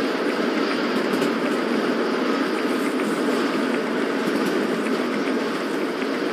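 Wheels click over rail joints.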